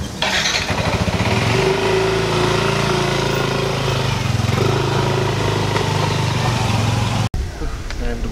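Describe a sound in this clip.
A motor scooter engine starts and idles, then rides off and fades.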